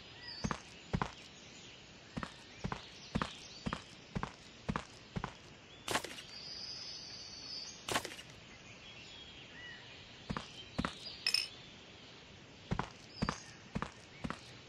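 Footsteps thud on a hard floor at a walking pace.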